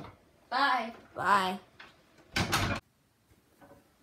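A door swings shut with a thud.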